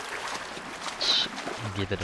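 Water splashes around wading feet.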